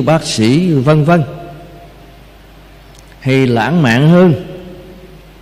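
An elderly man speaks slowly and calmly into a microphone, his voice echoing in a large hall.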